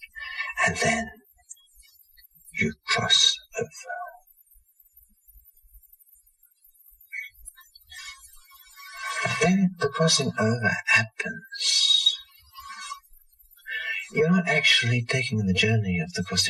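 A middle-aged man speaks calmly and thoughtfully, close by, with long pauses.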